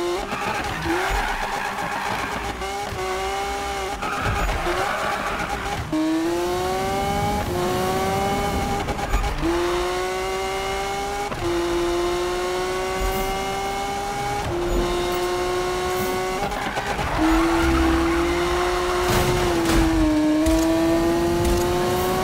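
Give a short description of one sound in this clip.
A race car engine revs high and shifts gears again and again.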